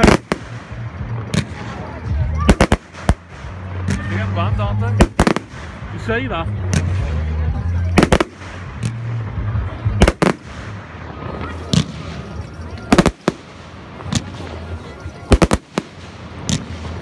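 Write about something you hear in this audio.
Fireworks bang and crackle loudly overhead, outdoors.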